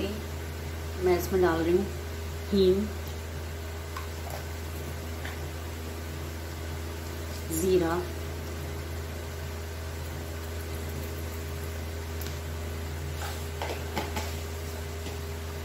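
Hot oil sizzles softly in a pan.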